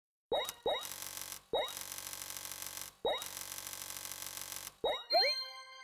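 Rapid electronic ticking rattles as a score counts up.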